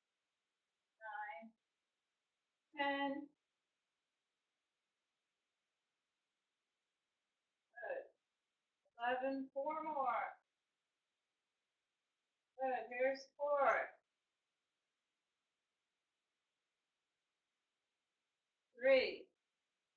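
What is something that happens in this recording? A woman speaks in short, calm bursts close by.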